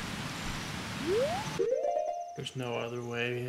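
A video game menu opens with a rising chime.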